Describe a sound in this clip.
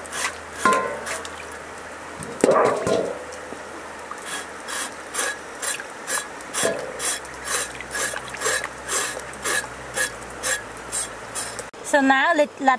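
A knife scrapes rhythmically across pork skin.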